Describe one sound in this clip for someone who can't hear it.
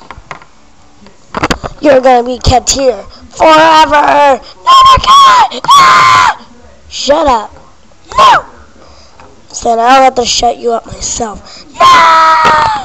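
Small plastic toys tap and click together close by.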